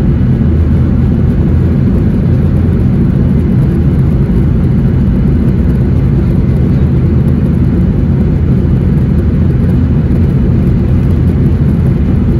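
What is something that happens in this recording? Jet engines roar steadily from inside an aircraft cabin.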